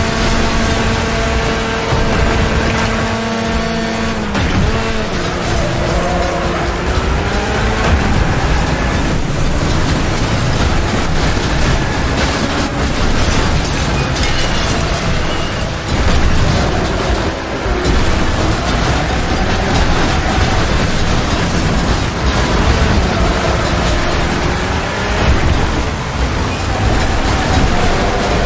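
Cars crash into each other with loud metal crunches.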